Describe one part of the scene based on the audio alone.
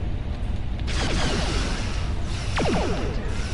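Energy weapons fire in a rapid burst.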